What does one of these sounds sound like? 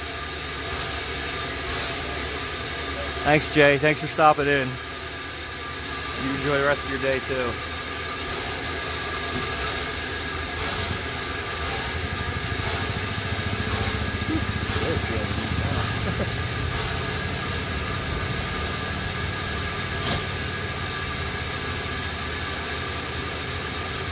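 A steam locomotive idles with a low, steady rumble.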